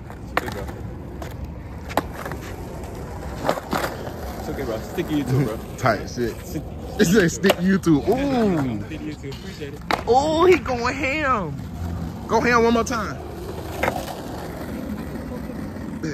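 A skateboard clacks sharply against the pavement.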